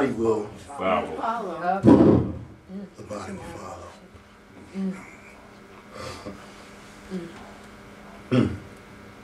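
A man speaks with feeling nearby, pausing often.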